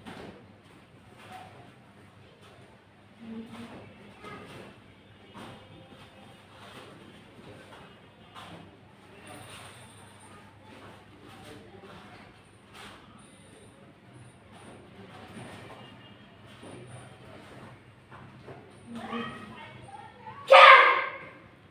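Bare feet thud and shuffle on a padded mat.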